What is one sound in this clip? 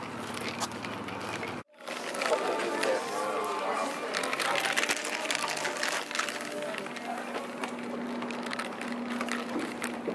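Flip-flops slap on the ground as someone walks.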